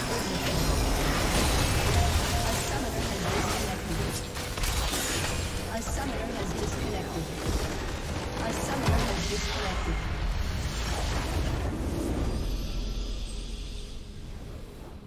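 Magic blasts and clashing battle effects from a video game burst loudly and rapidly.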